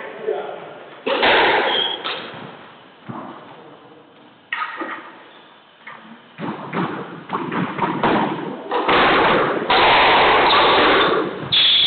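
A squash ball smacks off the walls with sharp echoing cracks.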